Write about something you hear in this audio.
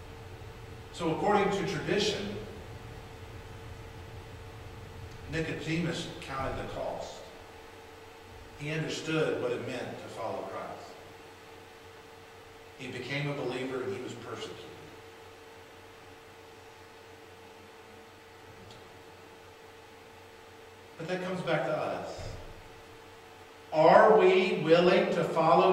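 A man speaks with animation through a microphone in an echoing room, pausing between phrases.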